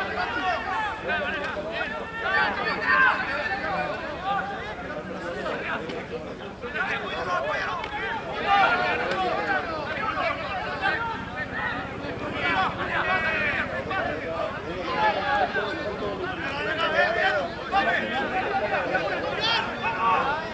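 Young women players call out loudly to each other across the field.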